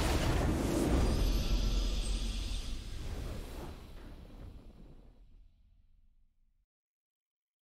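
A triumphant fanfare swells and slowly fades to silence.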